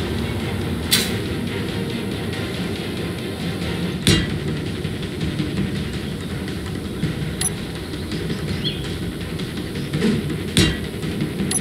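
Building blocks snap into place with sharp clicks.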